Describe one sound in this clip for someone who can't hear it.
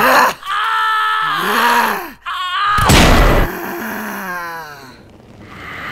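A young woman screams and wails in distress.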